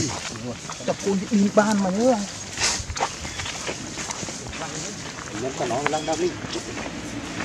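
Monkeys squeal and chatter nearby.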